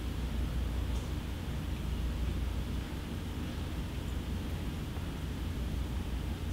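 A choir sings far off in a large echoing hall.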